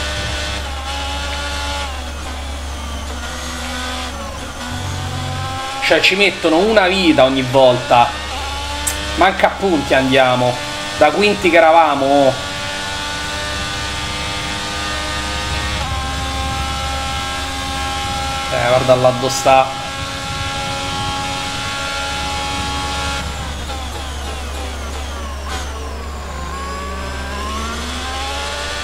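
A racing car engine whines and revs up and down through gear changes.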